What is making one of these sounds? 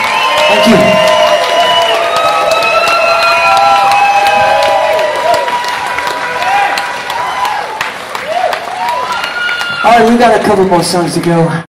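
A singer with a high voice sings through a microphone over loudspeakers in a large hall.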